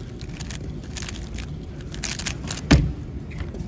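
Plastic puzzle cube pieces click and clatter rapidly as they are turned.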